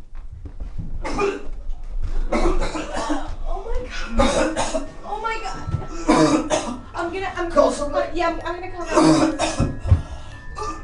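A woman cries out in panic and shouts urgently.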